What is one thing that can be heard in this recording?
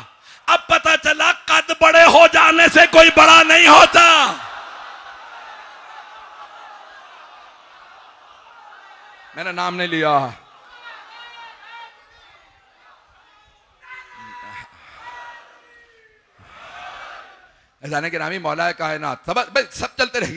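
A middle-aged man speaks with passion through a microphone.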